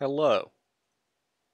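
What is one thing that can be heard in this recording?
A young man speaks briefly and with animation into a microphone.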